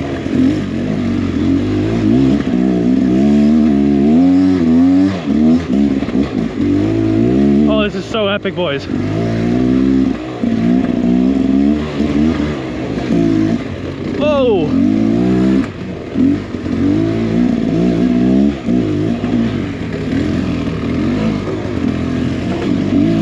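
A dirt bike engine revs up and down close by as it climbs a trail.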